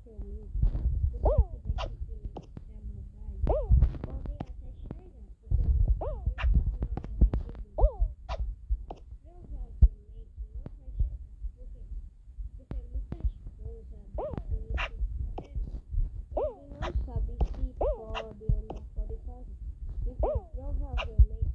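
Heavy balls thud and bounce with cartoonish boings.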